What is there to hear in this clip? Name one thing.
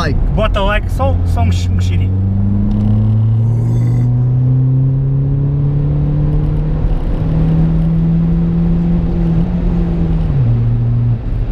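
A car engine revs up, its pitch climbing steadily before dropping back.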